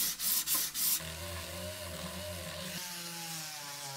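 A rotary polishing tool hums.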